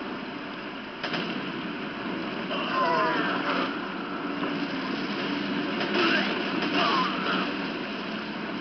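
Gunshots fire sharply in bursts.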